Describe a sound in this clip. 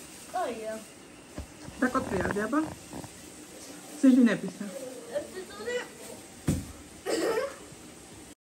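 A young girl talks and exclaims with animation close by.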